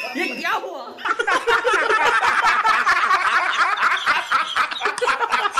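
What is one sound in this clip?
Several men laugh loudly and heartily together.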